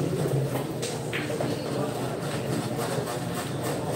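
Pool balls clack against each other and roll.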